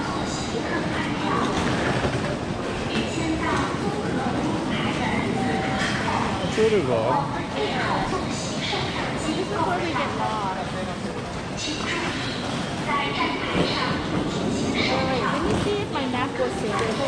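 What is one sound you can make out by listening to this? Footsteps shuffle and tap on a hard floor.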